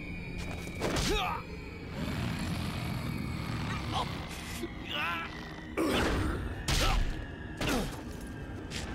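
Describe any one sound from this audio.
A man grunts as he struggles in a fight.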